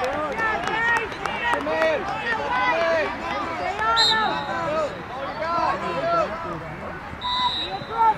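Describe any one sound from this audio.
A crowd of spectators talks and cheers outdoors.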